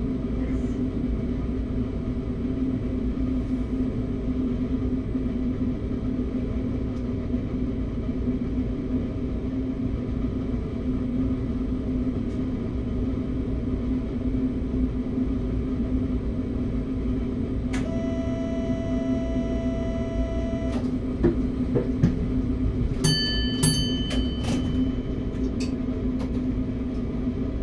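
A train's engine hums steadily while idling.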